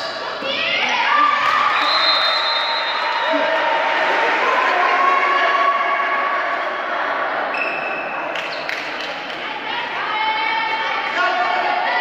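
Spectators chatter and cheer loudly in a large echoing hall.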